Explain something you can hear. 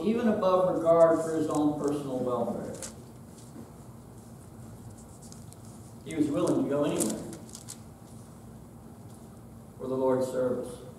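A middle-aged man speaks calmly and deliberately in a room with a slight echo, with pauses between phrases.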